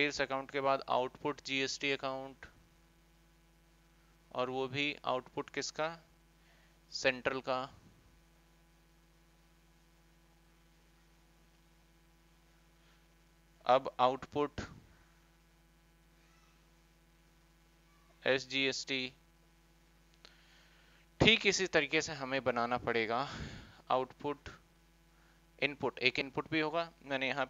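A man speaks calmly in bursts, close through a microphone.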